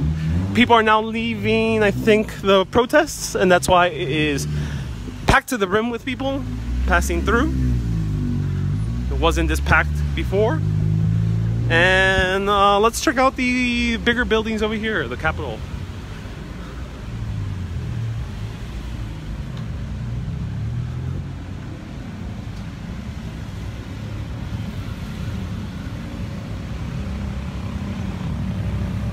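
Car engines idle and rumble in slow traffic nearby.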